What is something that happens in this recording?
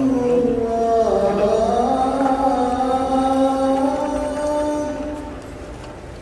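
A man chants in long, drawn-out tones through loudspeakers in a large echoing hall.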